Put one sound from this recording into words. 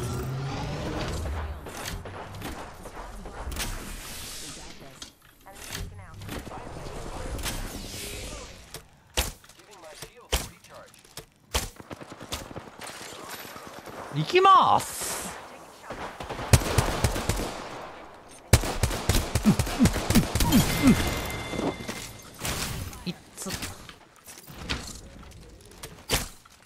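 A young woman talks into a microphone with animation.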